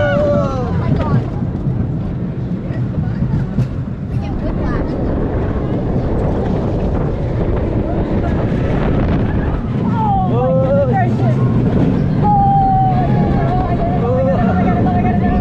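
A roller coaster car rumbles and clatters loudly along its track.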